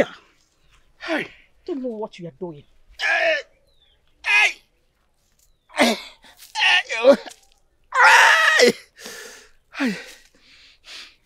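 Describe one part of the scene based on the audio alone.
An elderly man groans and wails in pain, close by.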